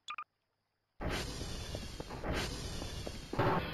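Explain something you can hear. A heavy metal door slides open.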